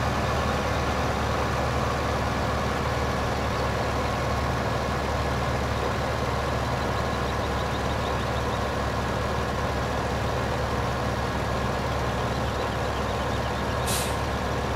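A tractor engine hums steadily as it drives along.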